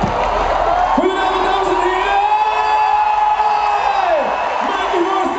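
Audience members whistle loudly.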